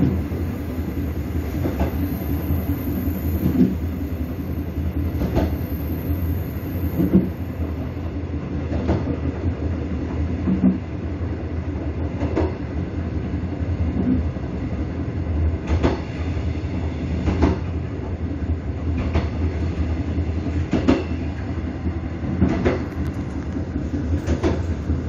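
A train rumbles along the track.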